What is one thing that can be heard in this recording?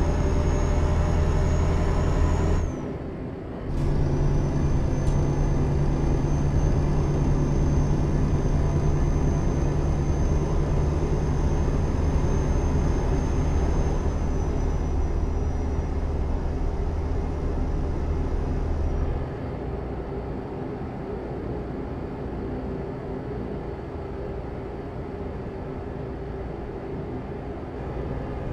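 A simulated diesel truck engine drones while cruising at speed.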